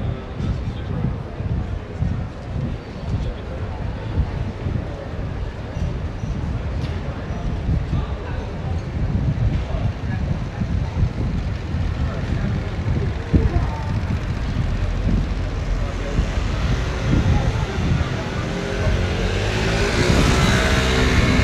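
Traffic hums steadily along a city street.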